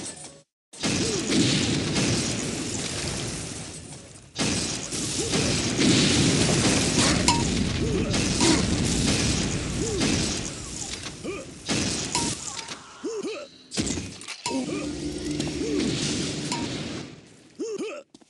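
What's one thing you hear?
Weapons fire in rapid bursts with loud crackling blasts.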